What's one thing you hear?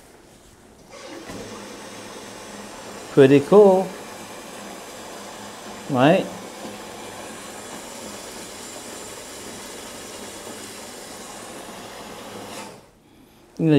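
Whirlpool jets churn and bubble water in a tub with a steady rush.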